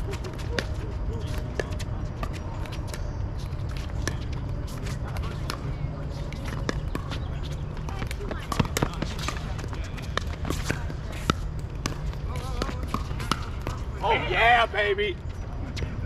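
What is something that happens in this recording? Paddles pop sharply against a plastic ball, back and forth.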